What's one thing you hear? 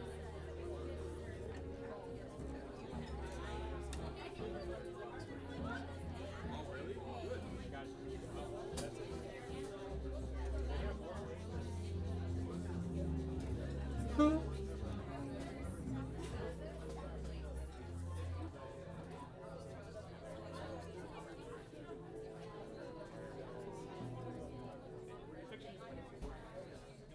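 A piano plays chords.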